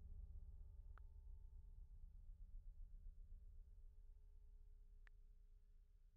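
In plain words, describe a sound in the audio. A phone keyboard gives short soft clicks.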